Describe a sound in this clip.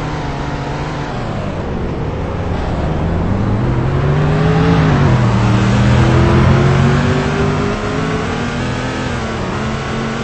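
A car engine revs up and shifts gears as it speeds along.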